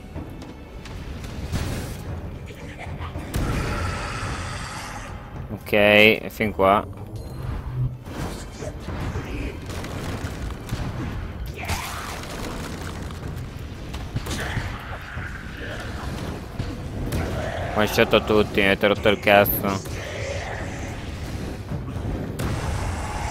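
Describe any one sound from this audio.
Fiery magic blasts whoosh and crackle.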